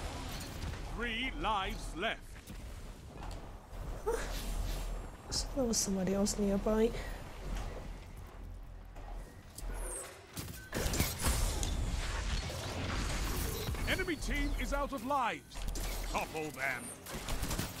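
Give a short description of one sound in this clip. A young woman talks with animation into a microphone.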